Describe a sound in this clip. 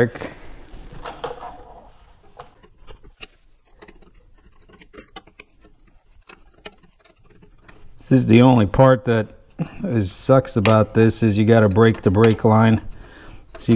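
Metal tools click and scrape against a brake drum.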